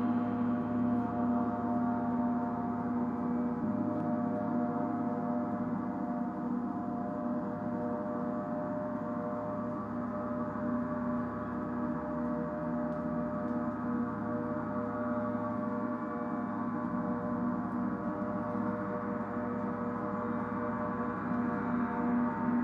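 Large gongs hum and shimmer with a steady, layered ringing drone.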